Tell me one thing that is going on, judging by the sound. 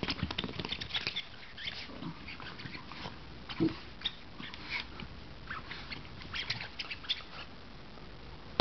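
A small dog tugs and chews on a rubber toy.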